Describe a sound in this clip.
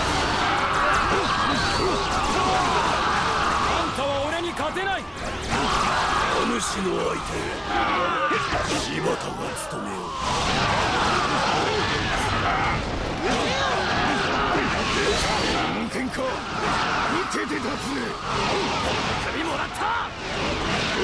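Swords clash and slash in rapid, repeated strikes.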